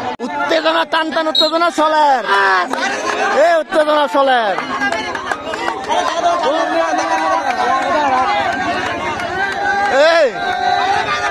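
A young man chants loudly and rapidly.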